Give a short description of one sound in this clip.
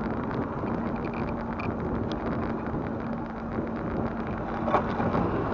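A bicycle rattles and clicks over the road.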